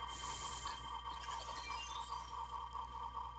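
Sparkling magical chimes tinkle upward.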